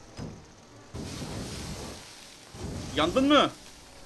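A flamethrower roars.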